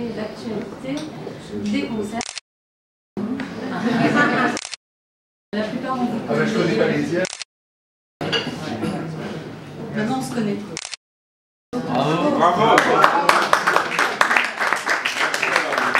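A man speaks and laughs nearby.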